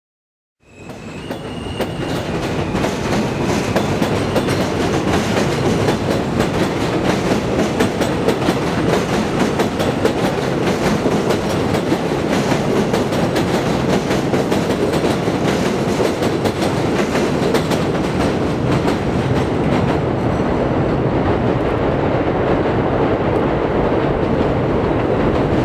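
A train rumbles and clatters loudly along an elevated track.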